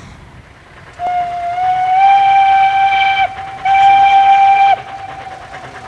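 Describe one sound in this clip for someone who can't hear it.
A steam locomotive's whistle blows two long, loud blasts in the distance.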